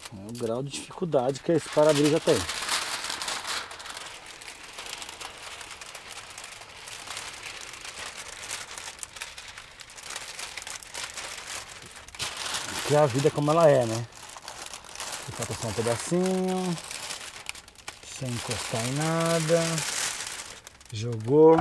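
Plastic film crinkles and rustles close by.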